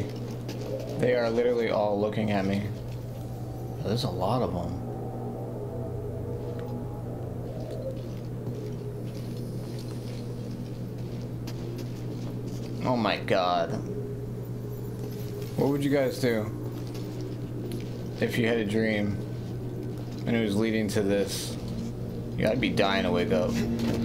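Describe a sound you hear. A man talks calmly into a nearby microphone, in short bursts.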